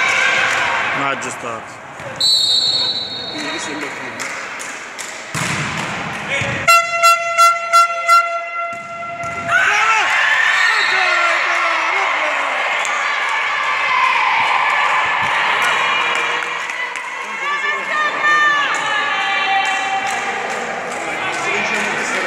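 Young women shout and call out across the court.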